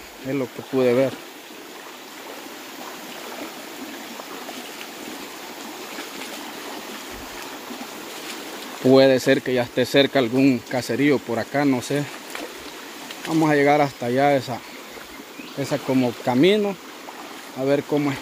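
A shallow stream babbles over stones.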